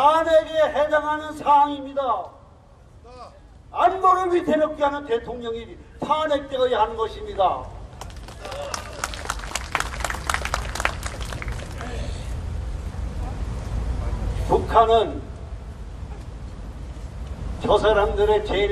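A man speaks forcefully into a microphone over loudspeakers, outdoors.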